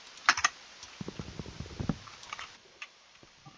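A wooden block is chopped apart with rapid knocking thuds.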